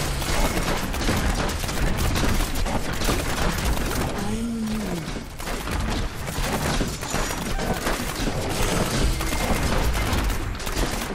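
Rapid game weapon shots and fiery explosions crackle and boom over one another.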